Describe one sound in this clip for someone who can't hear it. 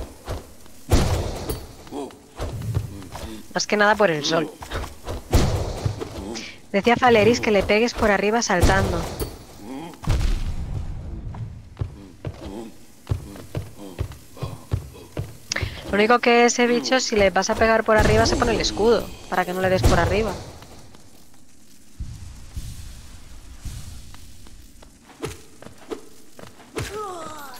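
A sword slashes and strikes with sharp hits.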